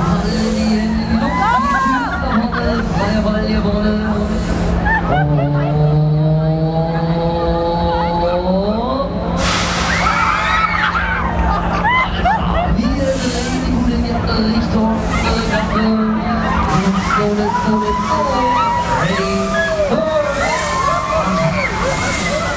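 Riders scream loudly on a spinning fairground ride.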